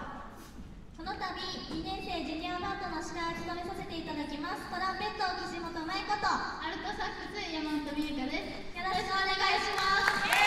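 Two young women sing together into microphones over a loudspeaker.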